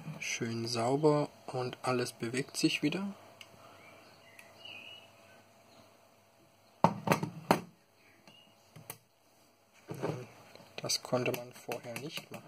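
A metal mechanism clicks and rattles as it is handled close by.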